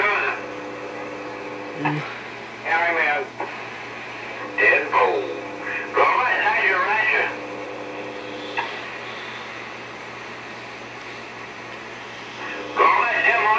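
Voices come through a radio loudspeaker in short crackly bursts.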